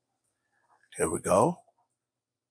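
A tablet plays a short startup chime.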